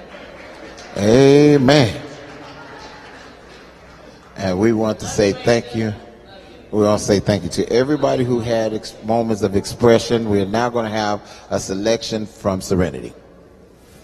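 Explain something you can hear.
A man preaches with animation through a microphone in a large hall.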